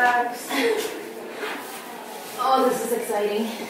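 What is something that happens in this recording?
Soft footsteps pad across a floor.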